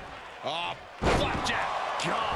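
A body slams hard onto a wrestling ring mat with a loud thud.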